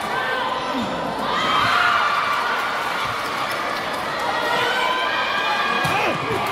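A crowd of spectators cheers and shouts in a large echoing hall.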